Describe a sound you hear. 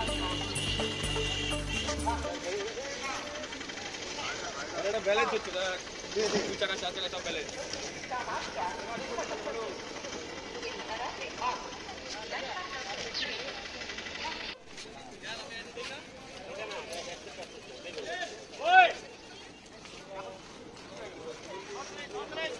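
Men and women talk nearby with animation.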